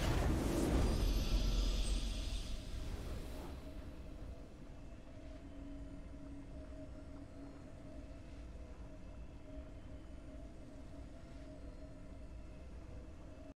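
A triumphant fanfare rings out and holds a steady chord.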